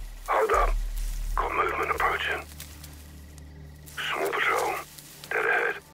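Tall grass rustles as someone crawls through it.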